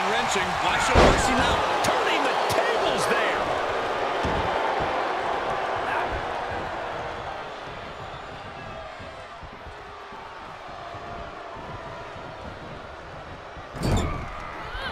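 A heavy body thuds onto a wrestling ring mat.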